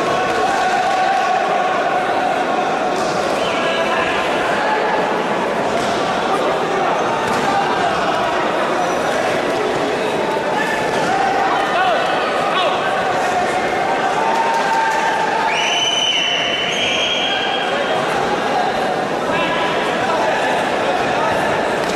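A man referee shouts short commands.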